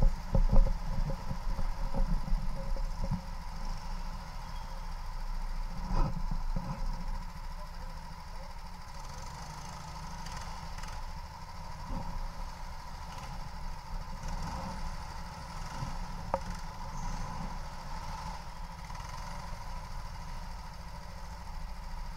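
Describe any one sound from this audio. A go-kart engine buzzes steadily close by.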